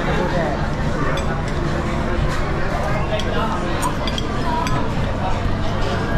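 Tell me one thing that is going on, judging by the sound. Plates and cutlery clink.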